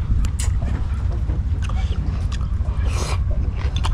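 A man chews and slurps food up close.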